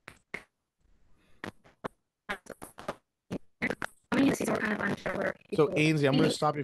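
A young woman talks over an online call.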